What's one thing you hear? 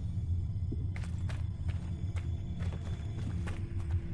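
Footsteps crunch on sandy ground.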